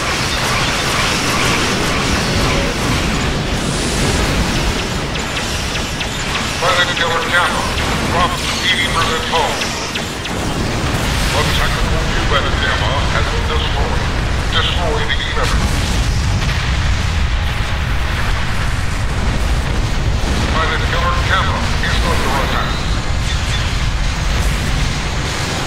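Energy weapons fire with rumbling blasts.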